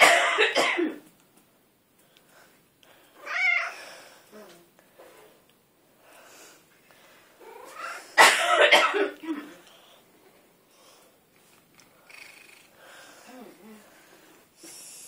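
A cat meows loudly and repeatedly, close by.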